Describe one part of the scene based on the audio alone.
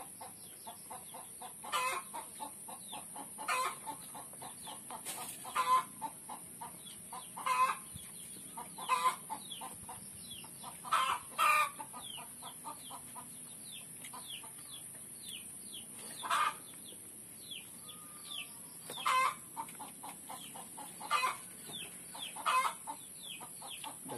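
A man chews food close by with loud, wet smacking of the lips.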